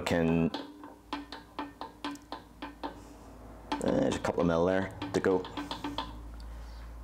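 A metal gauge clicks and taps against a wheel hub.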